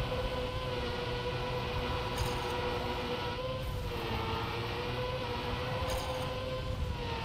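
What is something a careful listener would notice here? A racing car engine hums steadily, its pitch rising and dipping slightly.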